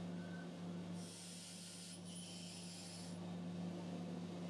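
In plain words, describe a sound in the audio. A drill bit grinds into spinning metal with a hiss.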